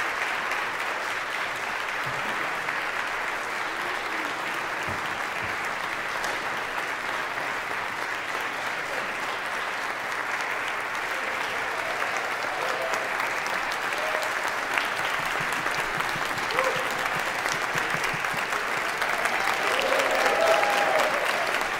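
An orchestra plays strings and winds in an echoing hall.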